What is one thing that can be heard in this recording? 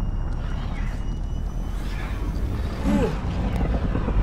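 A young man shouts with excitement into a headset microphone.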